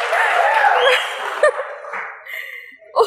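A woman laughs loudly close to a microphone.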